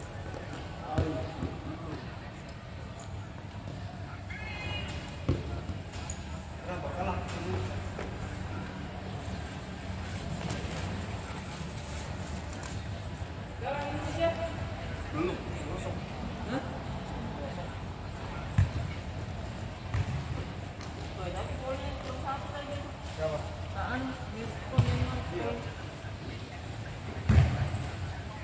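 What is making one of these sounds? A ball is kicked and thuds in a large echoing hall.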